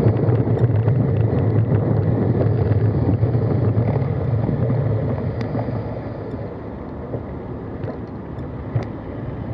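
Bicycle tyres roll over a road with a low rumble.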